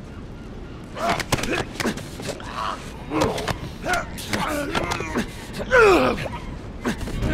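A man groans and gasps in pain.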